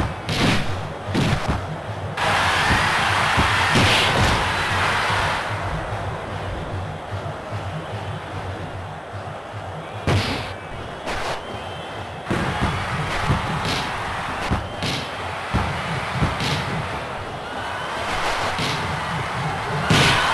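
A video game stadium crowd cheers steadily.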